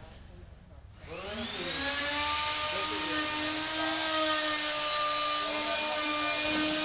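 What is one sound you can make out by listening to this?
An electric water pump starts and hums steadily.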